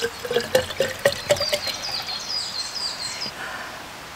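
Water pours from a plastic bottle into a flask.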